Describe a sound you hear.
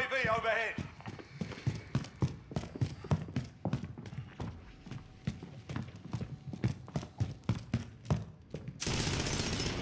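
Footsteps thud quickly on wooden floors.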